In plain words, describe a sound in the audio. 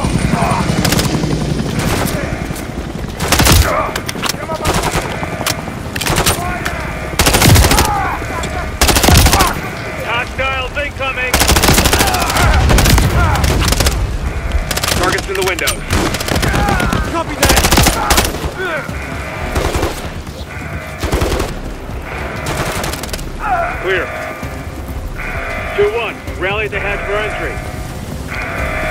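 Gunfire cracks in loud bursts.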